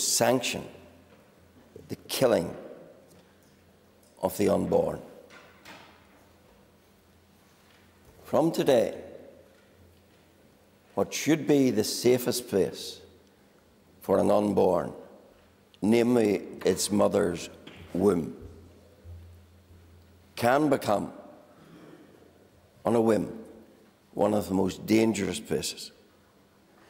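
An elderly man speaks deliberately into a microphone, pausing between phrases.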